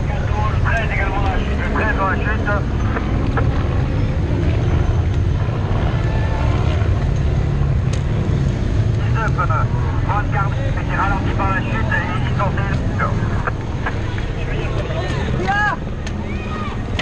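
A man talks close by, with animation.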